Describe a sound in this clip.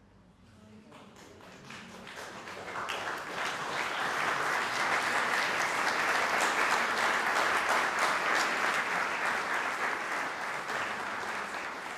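An audience applauds in a large echoing hall, swelling and then slowly easing.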